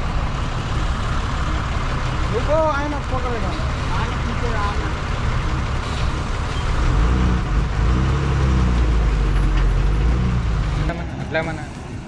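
A truck engine rumbles low and heavy close by.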